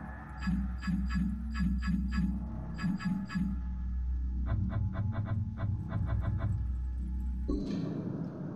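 Menu tones blip in quick repeated runs.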